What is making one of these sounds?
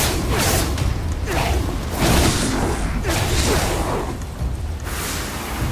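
A magic spell crackles and whooshes in bursts.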